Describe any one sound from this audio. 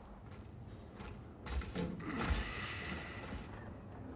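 A heavy metal door thuds shut.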